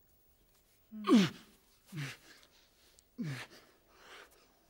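A man groans and breathes heavily close by.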